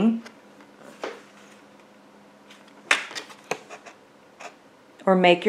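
Stiff paper card rustles and taps as it is handled.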